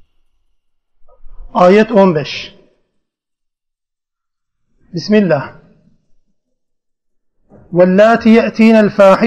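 An older man speaks calmly into a microphone, pausing between phrases.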